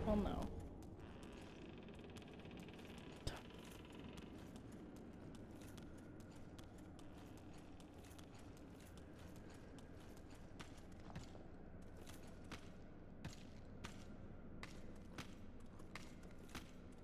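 Armoured footsteps clank on stone at a steady pace.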